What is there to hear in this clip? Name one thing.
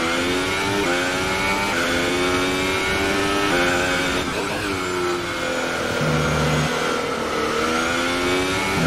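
A racing car engine screams at high revs, shifting gears up and down.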